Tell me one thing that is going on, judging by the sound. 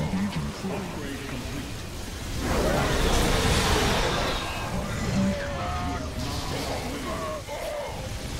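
Futuristic weapons blast and explode in a busy battle.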